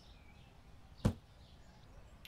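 A metal shelf clunks sharply into place.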